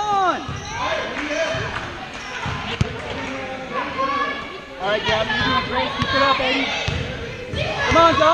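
Men and women in a crowd talk and call out in a large echoing hall.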